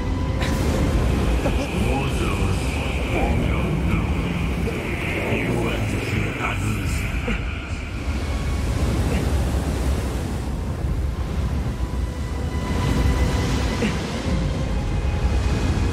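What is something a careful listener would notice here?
Strong wind rumbles and gusts steadily.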